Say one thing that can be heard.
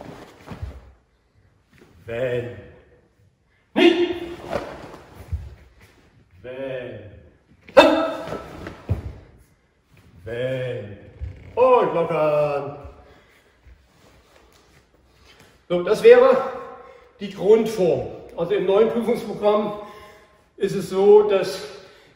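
An older man speaks calmly in an echoing hall.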